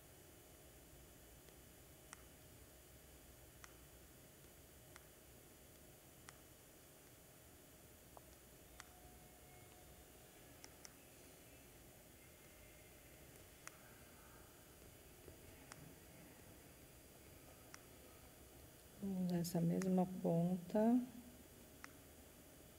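A paintbrush taps and dabs softly on paper.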